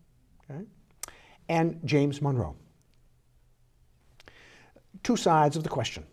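An elderly man speaks calmly into a close microphone, in short bursts with pauses.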